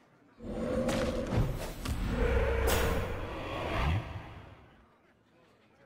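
A magical spell effect whooshes and booms, then fades away.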